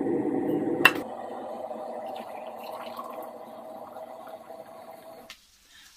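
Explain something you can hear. Water pours from a kettle into a mug.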